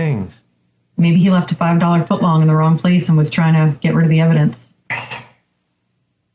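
A woman talks over an online call.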